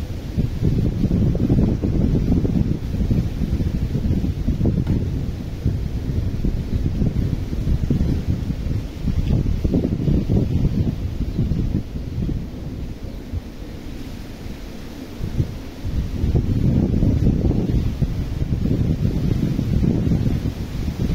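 Wind gusts roar outdoors in strong, uneven bursts.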